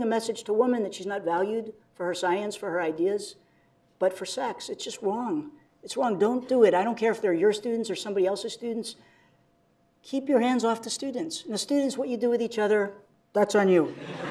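A middle-aged man speaks calmly through a microphone in a large hall.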